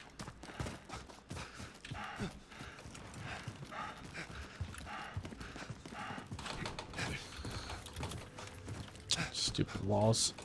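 Footsteps run quickly over dry grass.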